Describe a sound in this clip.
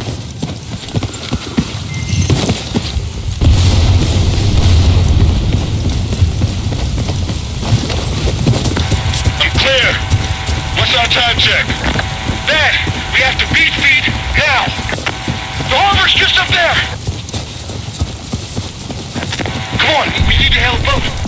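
Rain patters steadily on water.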